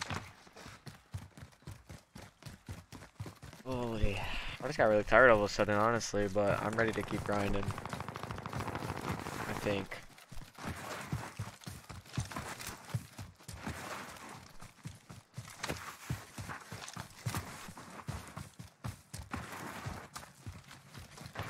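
Footsteps run quickly over hard ground and dry grass.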